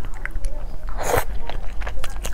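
A young woman blows softly on food.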